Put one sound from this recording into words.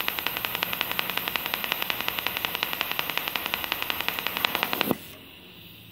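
A welding arc buzzes and crackles steadily.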